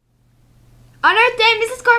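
A young girl speaks clearly into a microphone.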